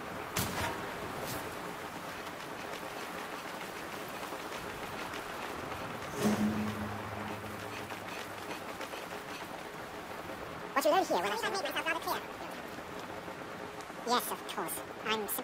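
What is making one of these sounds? Wind blows steadily in a snowstorm.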